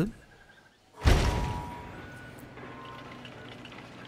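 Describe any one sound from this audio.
A heavy thud sounds as a wooden building drops into place, followed by a fading rumble.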